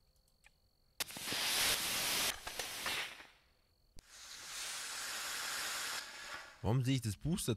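A rocket blasts off with a loud rushing roar.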